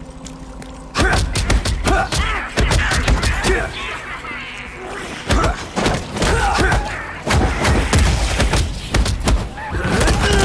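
Spell and impact sound effects crash and burst during a video game fight.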